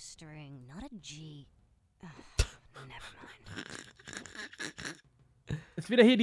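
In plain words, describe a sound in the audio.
A second man talks and laughs close to a microphone.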